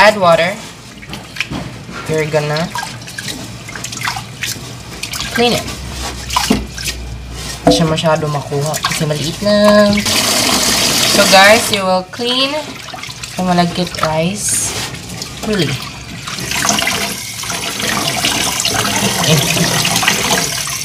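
Hands swish and rub rice grains in water.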